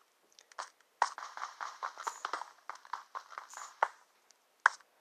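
A pickaxe chips rapidly at stone blocks.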